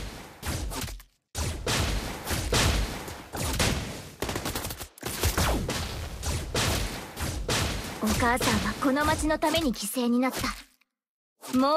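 Magic attacks whoosh and crackle in quick bursts during a fight.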